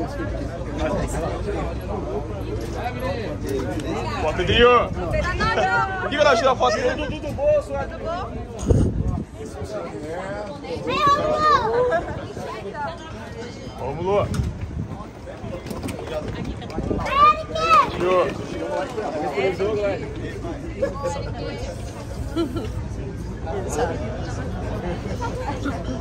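A crowd of young men and women chatter and call out excitedly outdoors, close by.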